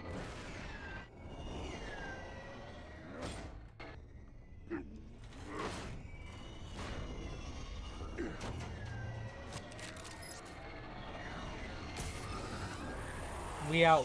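Small flying drones whoosh past.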